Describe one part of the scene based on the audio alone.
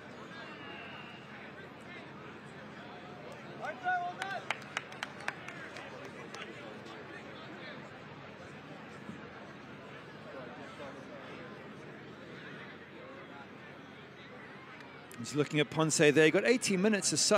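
A crowd murmurs faintly in an open stadium.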